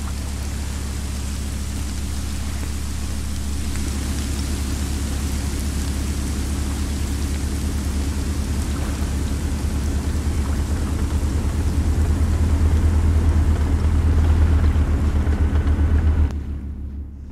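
Water splashes against a ship's hull.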